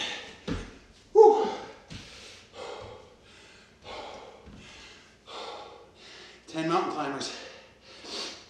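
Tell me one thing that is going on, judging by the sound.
A man breathes heavily in short, repeated bursts.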